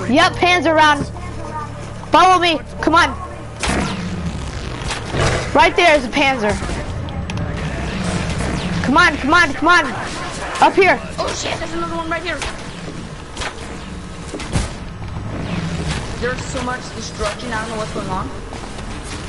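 A boy talks excitedly into a close microphone.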